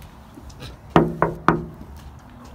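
Fingers tap sharply on a glass window.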